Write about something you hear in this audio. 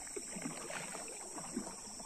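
A paddle splashes softly in the water.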